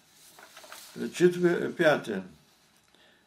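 An elderly man speaks briefly and calmly close by.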